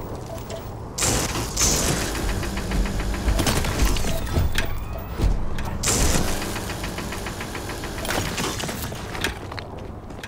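A laser beam buzzes and crackles steadily.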